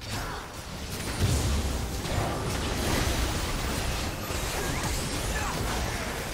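Fantasy battle effects crackle, whoosh and boom without a break.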